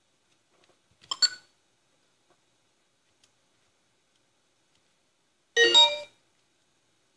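A short electronic game chime sounds twice.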